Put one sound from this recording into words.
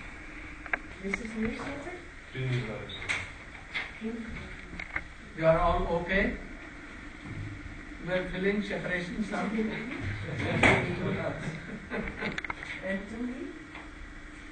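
An elderly man speaks calmly in an echoing room.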